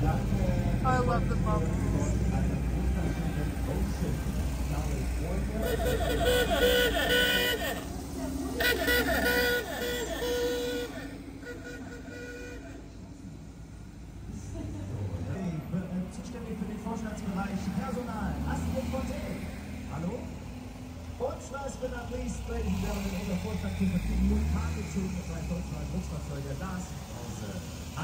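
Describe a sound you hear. Old van engines chug past close by.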